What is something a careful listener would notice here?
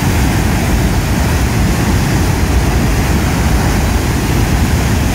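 Water roars and churns as it gushes out from a dam spillway.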